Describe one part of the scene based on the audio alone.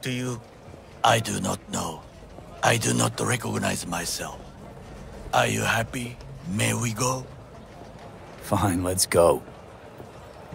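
A man answers in a calm, low voice.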